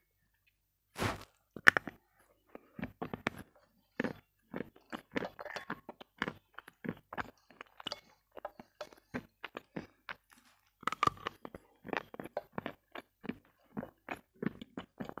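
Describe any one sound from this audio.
Ice crunches and cracks loudly between a young woman's teeth, close to a microphone.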